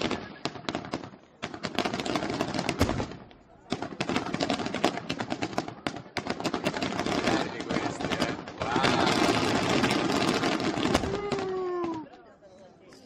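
Fireworks bang and crackle loudly overhead.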